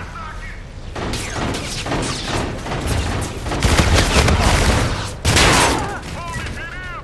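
Rapid gunfire bursts loudly up close.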